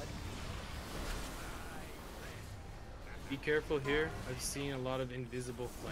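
A dragon breathes a roaring blast of fire.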